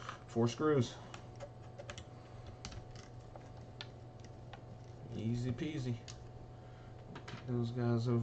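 A screwdriver turns a screw with small ticking clicks.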